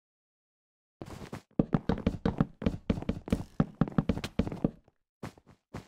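Game blocks are placed with soft, quick thuds.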